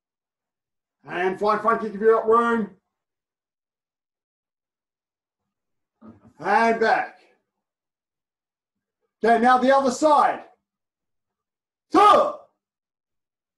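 A middle-aged man speaks calmly, close by, in short phrases.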